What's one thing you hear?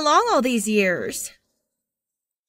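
A young woman speaks briefly close by.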